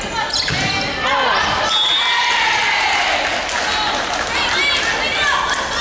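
Young women players shout and call to each other.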